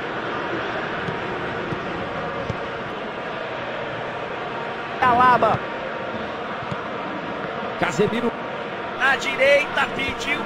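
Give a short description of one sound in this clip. A stadium crowd roars steadily in the background.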